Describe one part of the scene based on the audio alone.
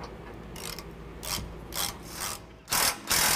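A ratchet clicks as it turns a bolt.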